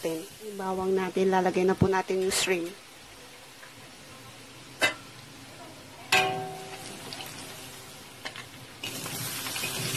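Minced garlic sizzles gently in hot oil.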